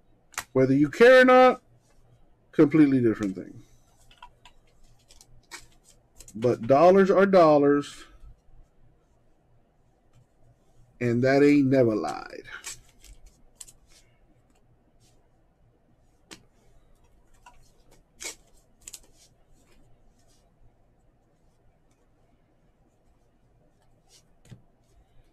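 Trading cards rustle and click as hands sort through them.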